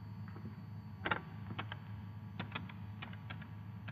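Telephone buttons click as a number is dialed.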